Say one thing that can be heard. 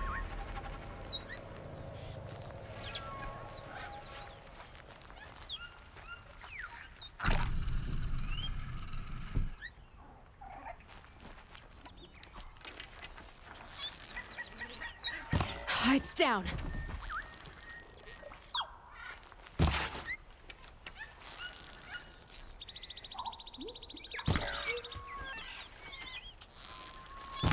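Leaves and undergrowth rustle as someone pushes through dense plants.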